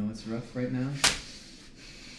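A hand slaps a face with a sharp smack.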